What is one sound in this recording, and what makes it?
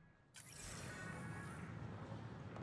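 A sliding door whooshes open.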